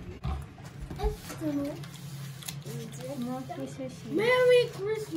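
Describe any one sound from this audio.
Children talk and giggle close by.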